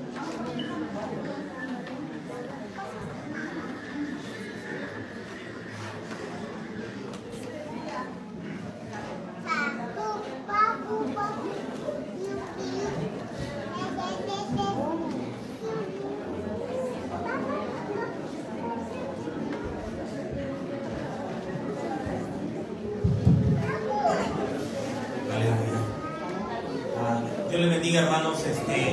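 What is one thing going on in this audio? A crowd of men and women chatter in a large room.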